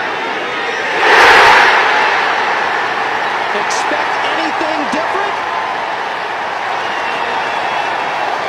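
A large crowd outdoors roars and cheers loudly.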